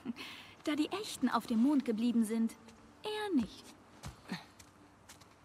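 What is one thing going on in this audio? A teenage girl speaks calmly nearby.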